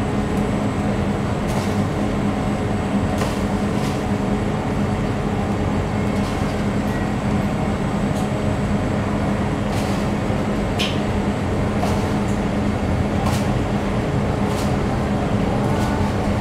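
Chocolate sprinkles patter softly onto dough.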